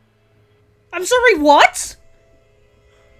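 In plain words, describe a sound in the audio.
A young woman gasps loudly in surprise.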